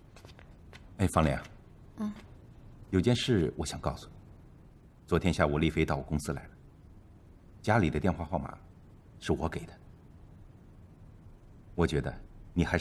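A middle-aged man speaks calmly and seriously, close by.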